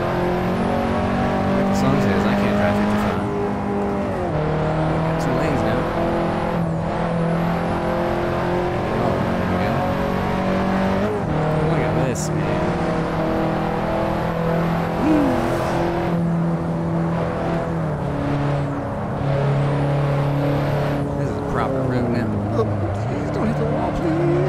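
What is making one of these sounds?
A car engine hums steadily, its pitch rising and falling with gear changes.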